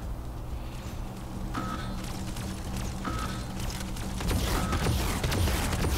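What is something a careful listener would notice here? Video game energy guns fire in bursts.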